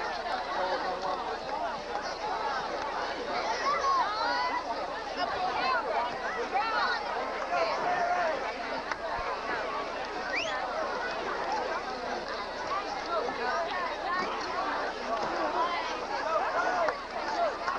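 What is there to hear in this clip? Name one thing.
A large crowd of people chatters and calls out all around, outdoors.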